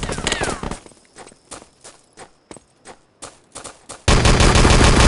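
Footsteps thud on stone at a steady pace.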